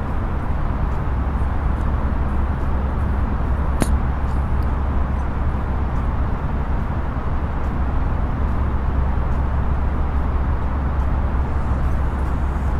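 A steady low roar of jet engines and rushing air fills an aircraft cockpit.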